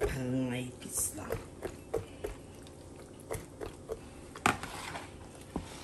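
Hands squish and rub a wet raw chicken in a bowl.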